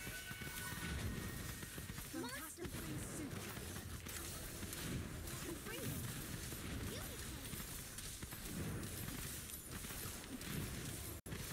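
Magical blasts and hits crackle and burst in a fantasy battle.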